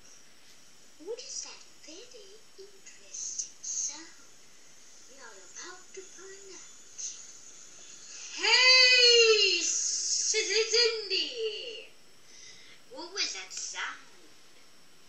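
A boy talks and laughs through a video call, close to the microphone.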